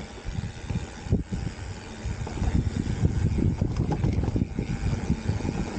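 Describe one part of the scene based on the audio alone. A mountain bike rattles over bumps.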